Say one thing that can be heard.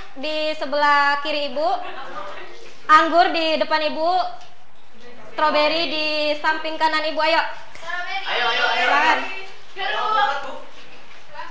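A group of young women sing together.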